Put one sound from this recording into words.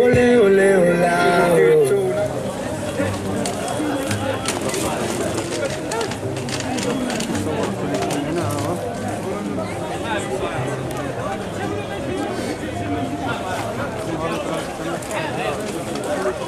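Footsteps shuffle on cobblestones.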